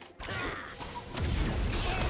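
A magic spell bursts with a whooshing boom.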